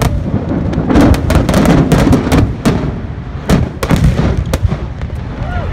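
Fireworks explode with loud booming bangs.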